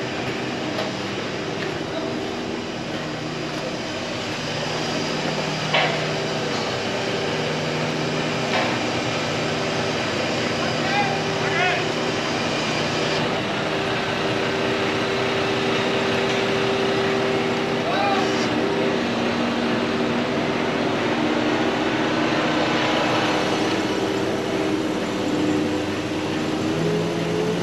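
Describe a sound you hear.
A truck engine idles close by.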